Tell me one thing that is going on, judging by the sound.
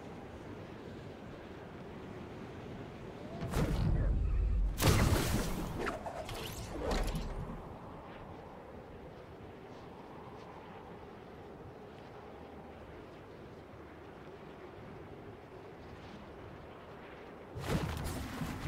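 Wind rushes steadily past a glider in flight.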